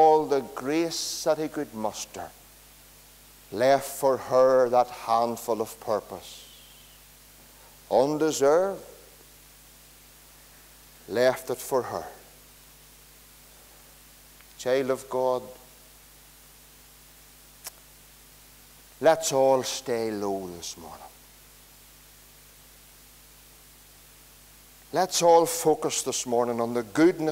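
A middle-aged man preaches with animation through a microphone, in bursts with pauses, in a room with some echo.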